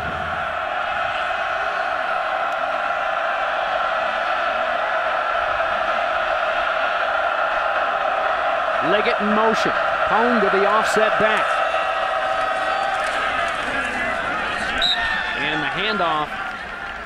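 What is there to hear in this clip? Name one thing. A large crowd cheers and roars steadily outdoors.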